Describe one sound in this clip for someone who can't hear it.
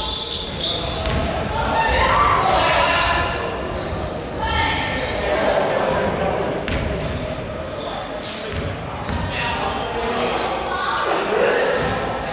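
Young men call out to each other across the echoing hall.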